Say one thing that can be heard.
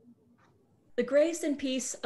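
A second woman speaks with animation over an online call.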